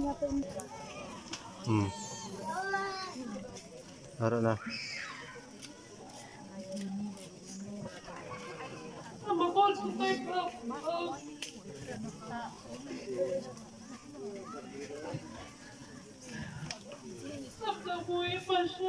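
Several women chat and laugh close by.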